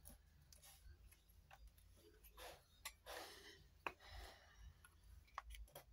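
A plastic cap clicks off a glue stick.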